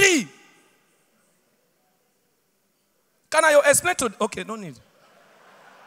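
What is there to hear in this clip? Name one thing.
A man speaks with animation into a microphone in a large hall.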